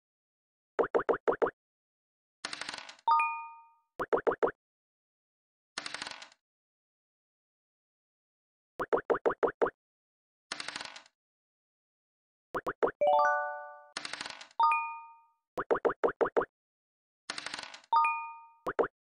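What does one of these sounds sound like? Game pieces hop across a board with quick, short ticking blips.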